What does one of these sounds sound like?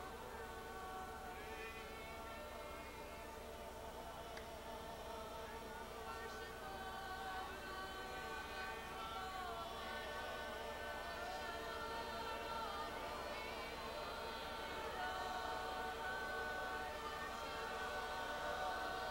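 A large crowd sings together in a big echoing hall.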